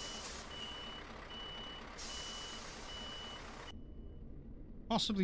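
A truck's reversing alarm beeps in an even rhythm.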